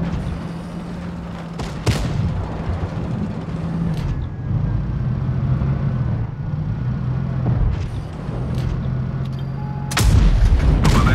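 A tank engine rumbles steadily.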